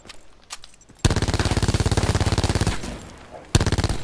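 A rifle fires a rapid burst of loud gunshots.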